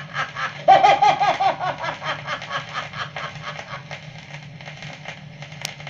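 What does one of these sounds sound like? An old record plays tinny, scratchy music.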